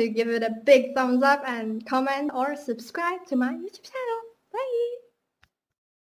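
A young woman sings up close.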